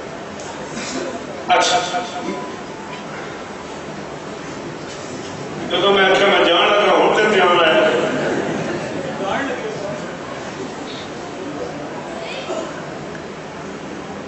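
A man recites with passion into a microphone, heard through loudspeakers in an echoing space.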